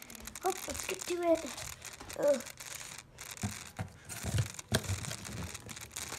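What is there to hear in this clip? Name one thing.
A plastic packet crinkles as it is handled.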